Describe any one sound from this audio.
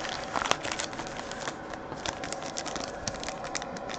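Trading cards flick and shuffle.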